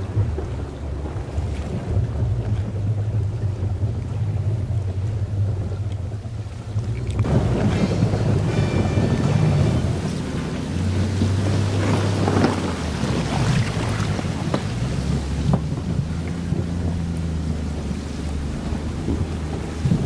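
A boat's outboard motor hums steadily.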